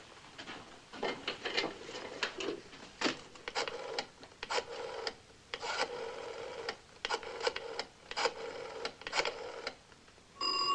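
Telephone dial clicks rattle quickly.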